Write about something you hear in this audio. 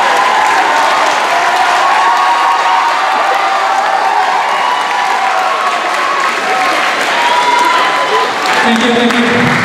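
A crowd of young people cheers and screams loudly in a large hall.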